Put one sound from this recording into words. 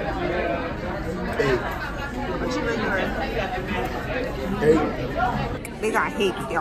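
Many voices chatter in the background.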